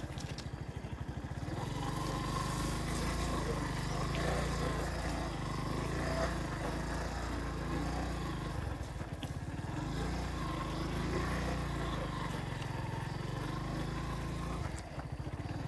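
Leaves and grass brush against a passing motorcycle.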